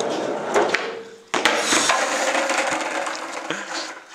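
A skateboard clatters on the pavement.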